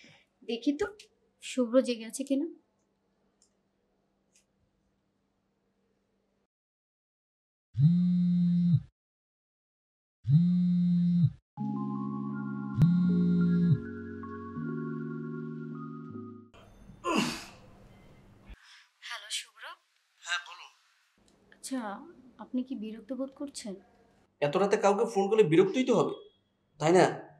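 A young woman speaks quietly into a phone, close by.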